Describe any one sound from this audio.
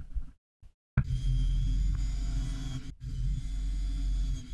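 A cordless drill whirs, driving into wood.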